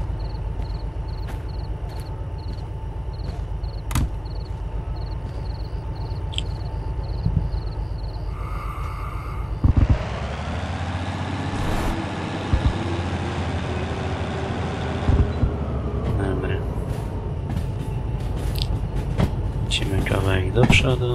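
A diesel engine idles with a steady, low rumble.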